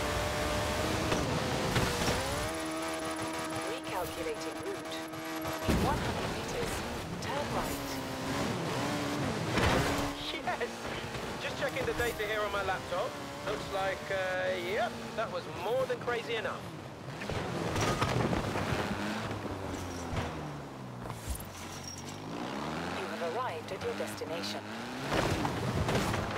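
A car engine roars and revs up and down at high speed.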